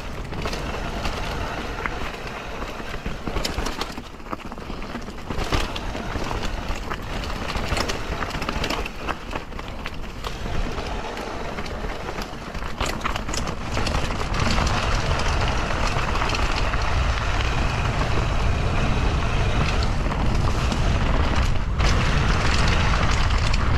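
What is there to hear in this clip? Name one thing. Bicycle tyres crunch and rattle over dry leaves and a bumpy dirt trail.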